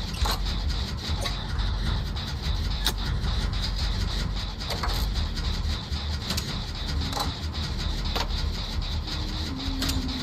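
A generator clatters and clanks as it is worked on.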